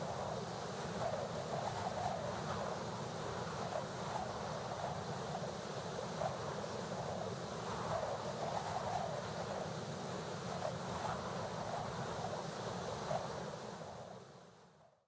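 Wind rushes steadily past a flying dragon, then fades away.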